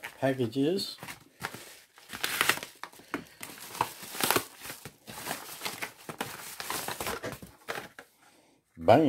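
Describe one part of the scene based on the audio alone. A plastic mailer bag crinkles and tears as hands open it.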